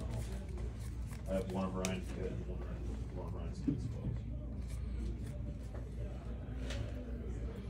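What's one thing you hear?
Playing cards flick and rustle as they are handled and shuffled.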